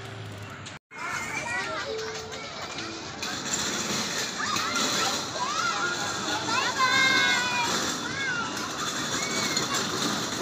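Children shout and squeal nearby outdoors.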